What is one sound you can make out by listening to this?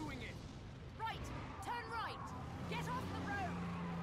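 A woman shouts urgently.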